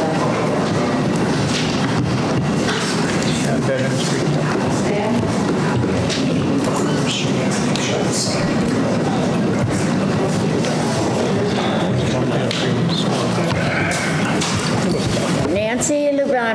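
A crowd murmurs and chatters in a large room.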